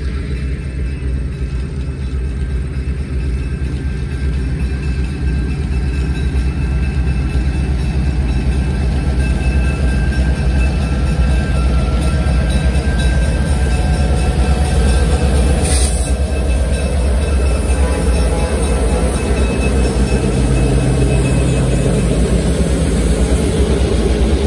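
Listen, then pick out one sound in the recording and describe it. Diesel locomotive engines rumble loudly as a train approaches and passes close by.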